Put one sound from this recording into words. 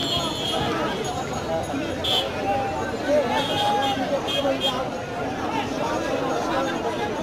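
A crowd of young men shouts and talks over one another outdoors.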